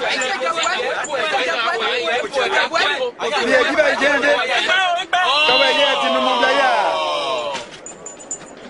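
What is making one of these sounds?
A group of men shout and laugh loudly.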